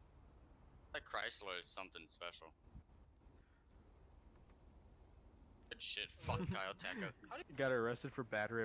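A man talks through a microphone.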